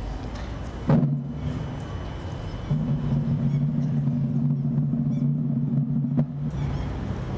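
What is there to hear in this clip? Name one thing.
A brass band plays a sustained chord outdoors.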